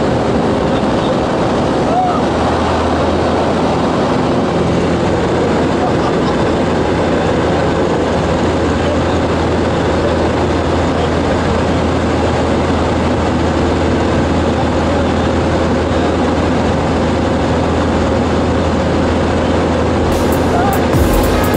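An aircraft engine roars steadily inside a cockpit.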